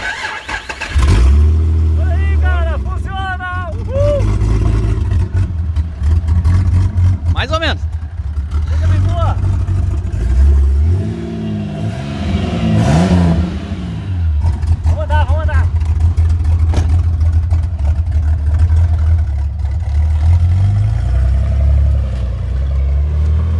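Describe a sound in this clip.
A car engine idles with a low, steady rumble.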